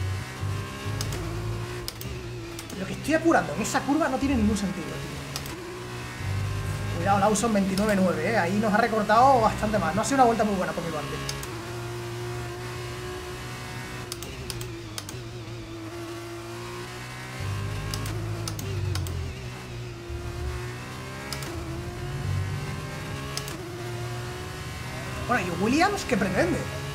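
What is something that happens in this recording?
A racing car engine whines steadily and shifts up and down through gears.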